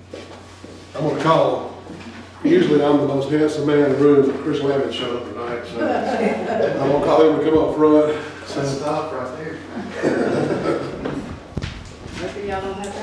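A middle-aged man speaks with animation through a microphone in a room with some echo.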